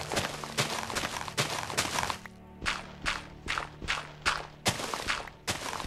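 Footsteps crunch steadily over snow.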